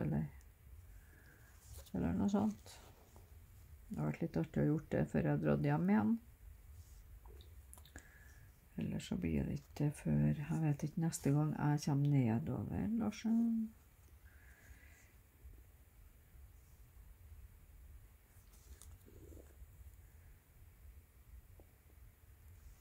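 Thread is drawn through fabric with a soft rustle.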